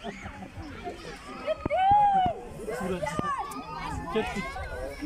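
Children chatter and call out close by, outdoors.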